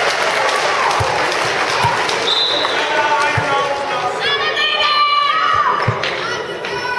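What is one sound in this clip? A handball bounces on a hard floor.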